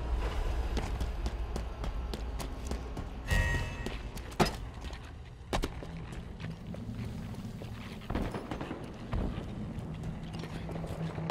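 Footsteps patter quickly on a hard metal floor.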